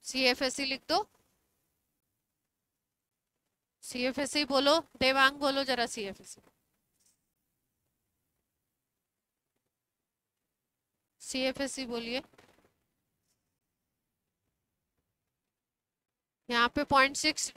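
A woman speaks clearly into a clip-on microphone, explaining in bursts with pauses.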